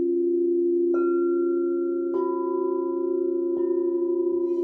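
A mallet strikes crystal bowls, starting new ringing tones.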